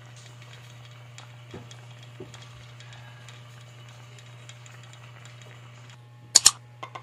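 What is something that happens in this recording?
Liquid bubbles and simmers in a pot.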